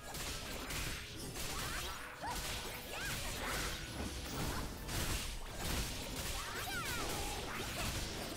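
Sword strikes and magic blasts whoosh and crash in quick bursts.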